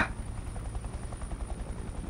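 Helicopter rotors thump steadily overhead.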